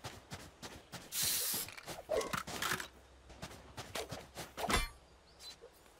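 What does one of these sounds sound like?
Weapons click and clatter as they are drawn and switched.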